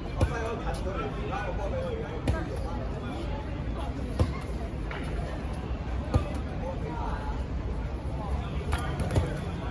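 A ball thuds against a foot and the ground now and then.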